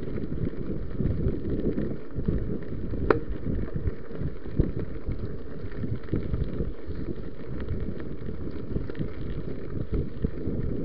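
Bicycle tyres crunch and rattle over gravel.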